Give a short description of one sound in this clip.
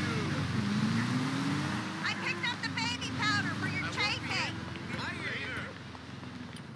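A car engine hums and revs nearby.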